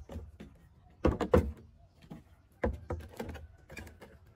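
Plastic bottles knock and clatter on a hard tabletop.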